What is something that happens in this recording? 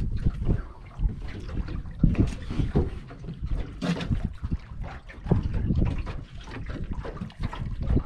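A landing net knocks against a metal boat.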